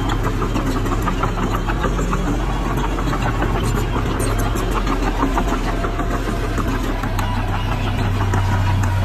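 Soil and rocks scrape and crumble under a bulldozer's blade.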